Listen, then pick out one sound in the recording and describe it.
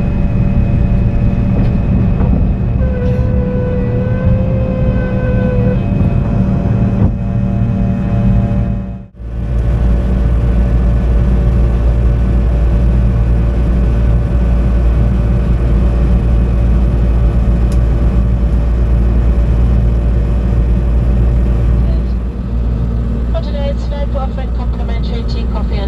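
A jet engine roars steadily inside an aircraft cabin.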